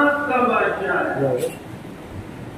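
An elderly man speaks calmly into a microphone, heard through a loudspeaker in an echoing room.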